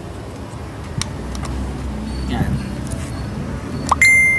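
A plastic connector clicks as it is handled.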